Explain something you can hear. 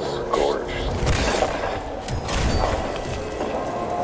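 A treasure chest bursts open with a crackling burst of sparks.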